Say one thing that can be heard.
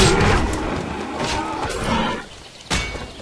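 A large beast roars and groans as it collapses.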